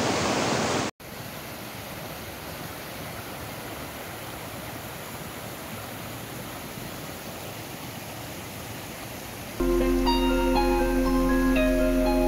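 A shallow stream trickles softly over stones.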